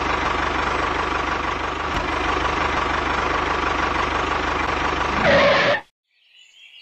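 A small toy motor whirs steadily.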